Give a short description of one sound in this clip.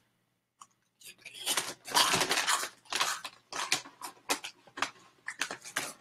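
A young man crunches chips.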